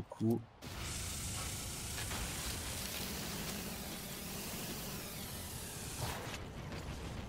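A laser beam hisses and crackles steadily.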